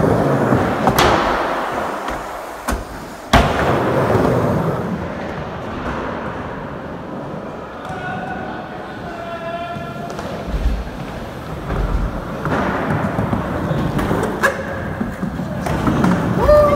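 A skateboard clatters sharply as its tail snaps and lands.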